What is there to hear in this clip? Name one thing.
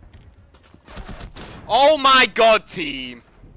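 Gunshots fire rapidly at close range.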